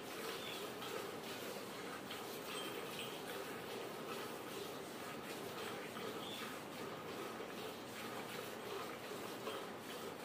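Milk squirts rhythmically into a metal pail.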